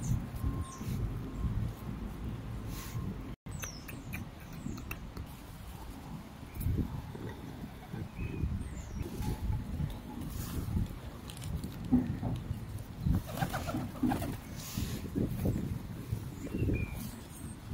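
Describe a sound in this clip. Feral pigeons flap their wings close by.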